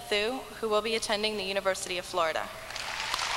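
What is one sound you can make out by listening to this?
A young woman speaks calmly through a microphone in a large echoing hall.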